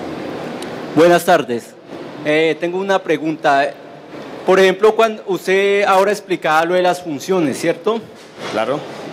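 A man speaks through a microphone into a hall.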